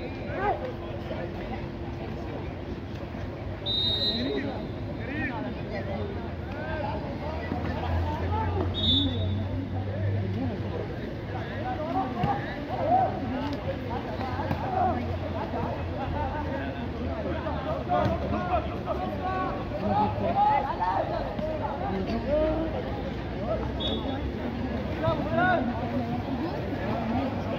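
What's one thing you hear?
Water splashes as swimmers thrash and kick in a pool.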